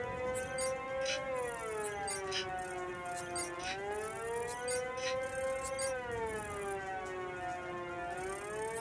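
An electronic scanner hums with a slowly wavering pitch.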